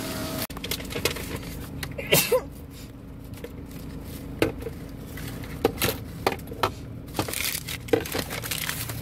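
A paper receipt crinkles and rustles in a hand.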